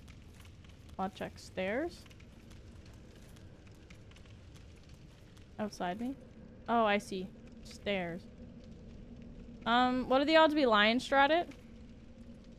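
A young woman talks with animation into a close microphone.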